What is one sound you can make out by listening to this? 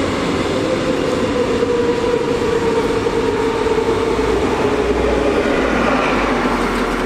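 A passenger train rumbles along the tracks.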